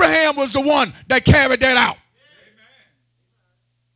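A man preaches loudly with animation through a microphone.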